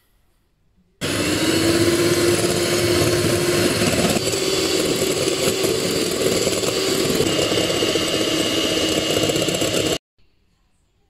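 An electric mixer whirs steadily.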